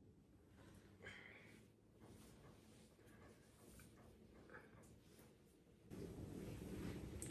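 A man sobs and cries.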